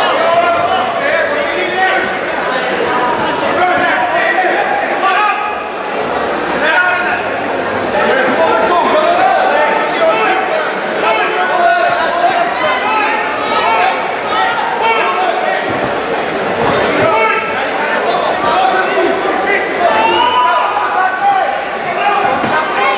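A crowd of men and women shouts and cheers loudly in a large hall.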